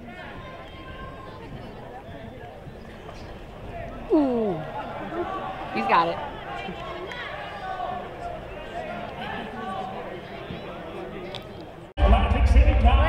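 A crowd cheers and shouts in a large arena.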